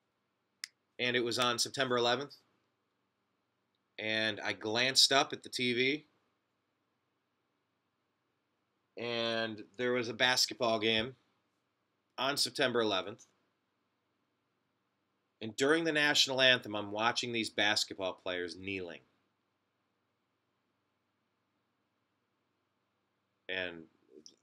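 A man speaks close to a microphone in calm, halting bursts with pauses between them.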